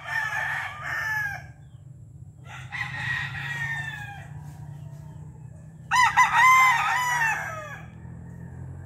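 A chicken squawks and cackles loudly, close by.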